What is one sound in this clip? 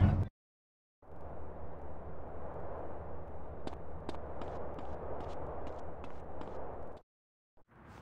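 Footsteps thud at a quick, steady pace.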